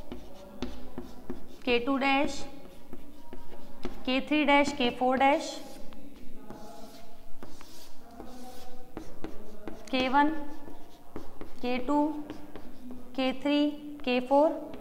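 A young woman speaks calmly and clearly, as if explaining.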